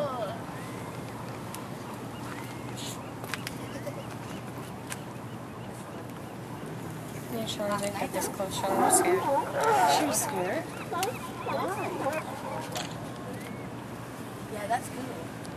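Sea lions bark and grunt nearby.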